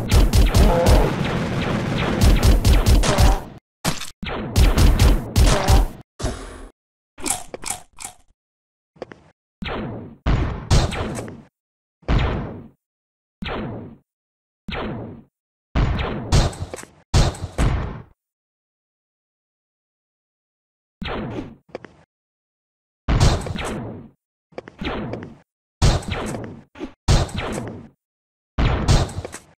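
Game gunshots fire in short, sharp bursts.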